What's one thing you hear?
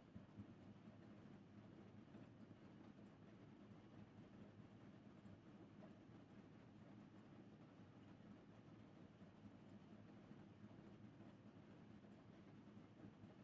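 A race car engine idles with a low, steady rumble.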